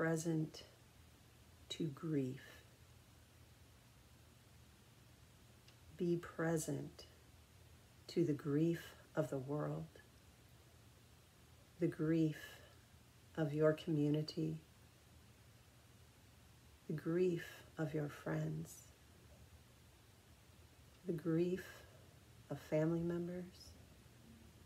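A middle-aged woman speaks calmly and slowly into a nearby microphone, with long pauses.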